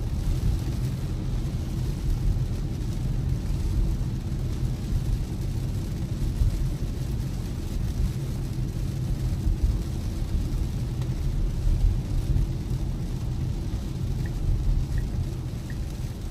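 Windshield wipers sweep across the glass with a swishing sound.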